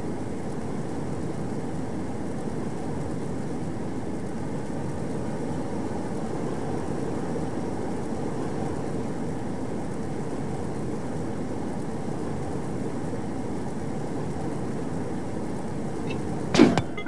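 A burner flame roars steadily.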